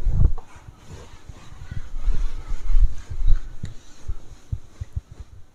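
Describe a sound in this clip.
A cloth rubs and wipes across a whiteboard.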